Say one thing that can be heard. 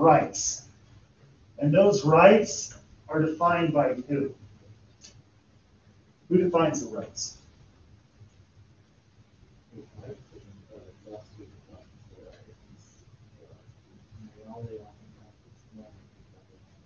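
A man talks, addressing a room in a calm, lecturing voice.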